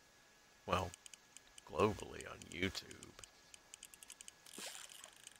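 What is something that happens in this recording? A fishing reel clicks rapidly.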